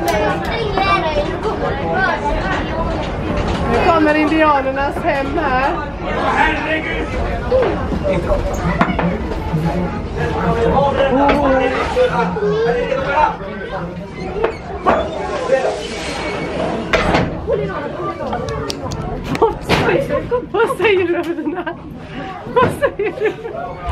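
Children talk and call out excitedly close by.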